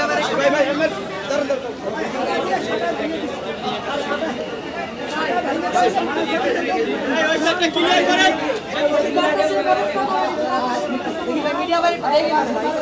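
A crowd of men talk and shout close by, all at once.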